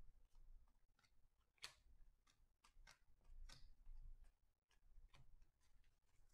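Trading cards flick and slide against each other.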